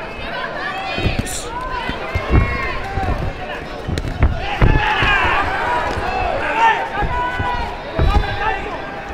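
Boxing gloves thud against a body in dull, heavy blows.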